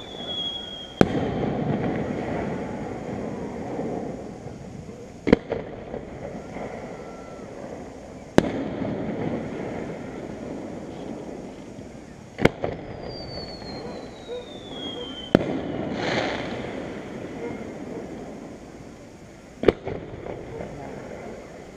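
Fireworks burst with sharp, distant booms that roll and echo across open air.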